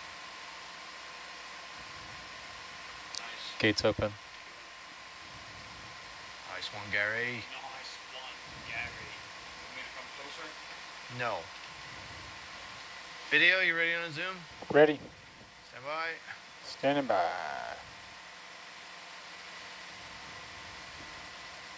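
A steady electrical hum runs throughout.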